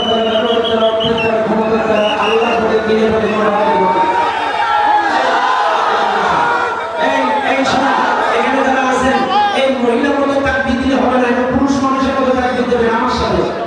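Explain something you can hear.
A large crowd of men chatters and calls out all around outdoors.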